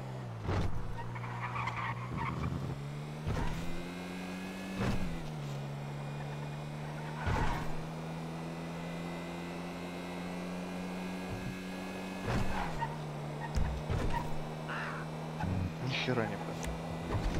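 A car engine hums steadily, rising and falling as it shifts gears.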